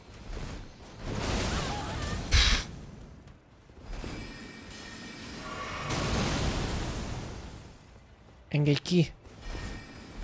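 Heavy weapons whoosh and clash in a fight.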